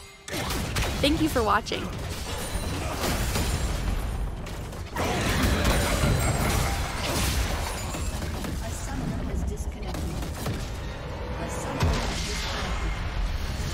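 Game spells and weapons clash and blast in a chaotic fight.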